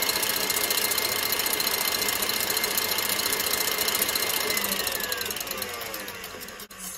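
A stand mixer whirs steadily as its whisk beats, then slowly winds down.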